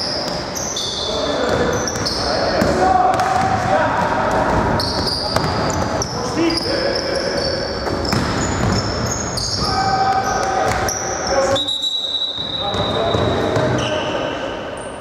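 Sneakers squeak sharply on a gym floor in a large echoing hall.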